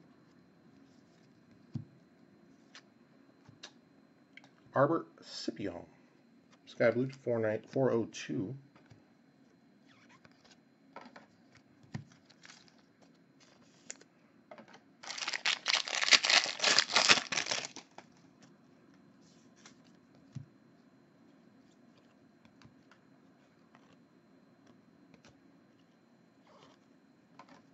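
Trading cards flick and slide against each other.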